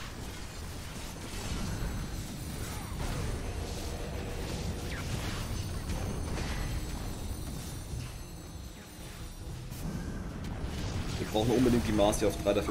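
Game battle effects clash and thump throughout.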